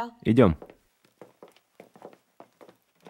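Footsteps tap across a hard floor.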